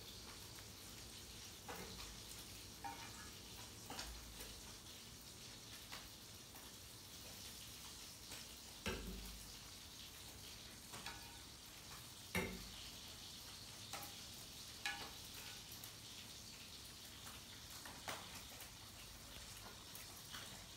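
A baby macaque bites and chews on round fruit.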